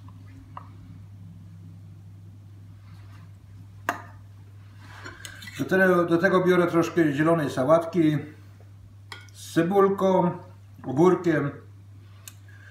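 A serving spoon clinks against a dish.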